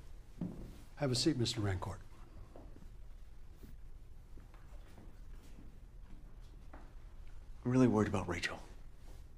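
A man speaks in a low, calm voice.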